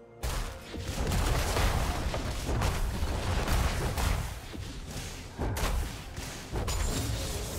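Spell effects whoosh and crash in a video game battle.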